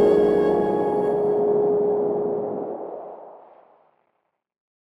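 A synthesizer plays a sustained electronic tone that slowly fades out.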